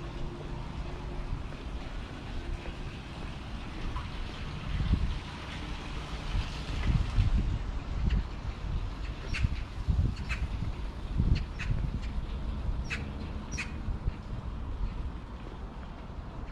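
Wind gusts outdoors, rumbling in bursts.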